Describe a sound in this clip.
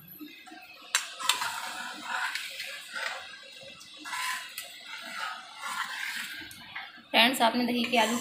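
A metal ladle scrapes and swishes through liquid in a metal pan.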